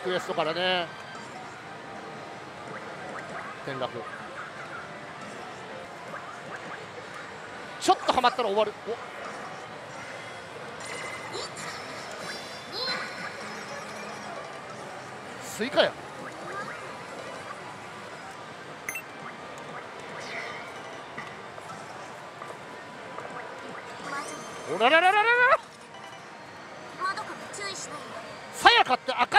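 A slot machine plays electronic music and sound effects.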